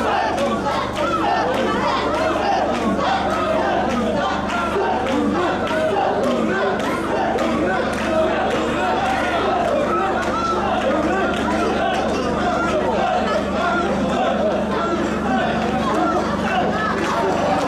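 A crowd of men chant loudly in rhythm, echoing in an enclosed hall.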